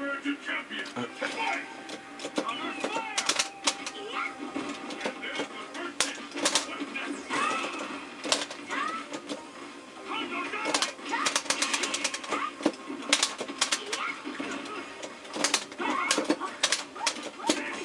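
Fighting game characters shout and grunt as they attack.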